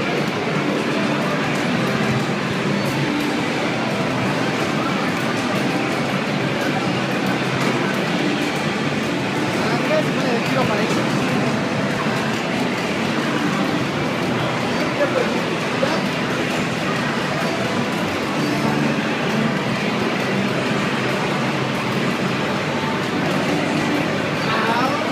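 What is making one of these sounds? Music and sound effects from a fighting video game play through a television loudspeaker.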